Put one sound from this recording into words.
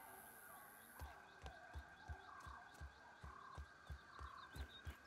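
Soft thumps of climbing footsteps repeat at a steady pace.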